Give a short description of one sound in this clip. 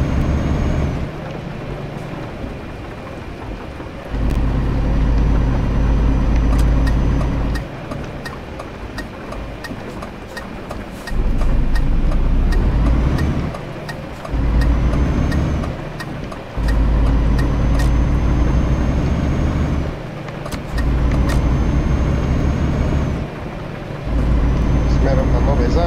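A truck engine rumbles low, rising and falling in bursts.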